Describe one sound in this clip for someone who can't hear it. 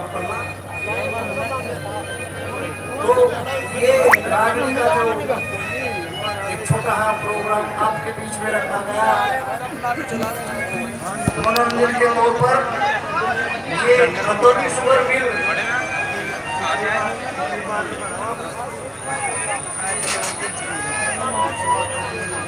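A large crowd of men murmurs and talks nearby.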